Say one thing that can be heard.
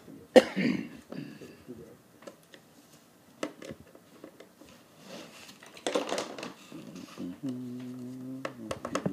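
Plastic wrapping crinkles as an item is unpacked.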